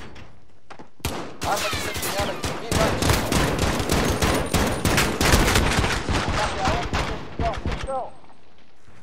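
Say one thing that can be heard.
Pistol shots ring out rapidly, one after another.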